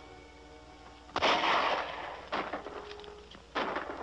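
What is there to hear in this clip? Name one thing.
A horse's hooves clatter on rock.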